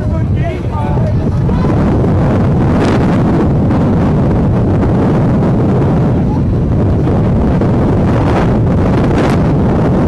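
A large crowd cheers and murmurs outdoors.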